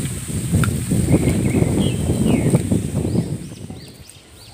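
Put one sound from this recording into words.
Leaves rustle as a boy pushes through bamboo stems.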